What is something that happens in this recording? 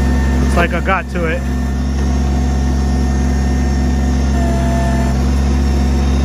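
A compact diesel tractor's engine runs with a steady, low drone.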